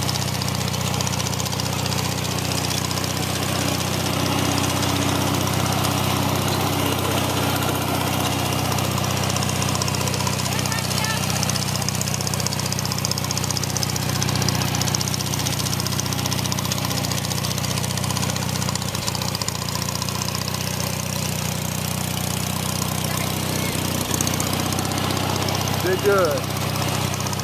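A lawn tractor engine runs with a steady, loud drone close by.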